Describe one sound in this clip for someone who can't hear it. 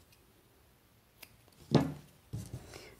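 Scissors snip a thread.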